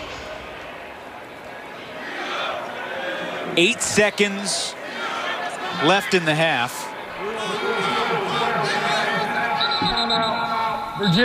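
A large crowd cheers and chants in an open stadium.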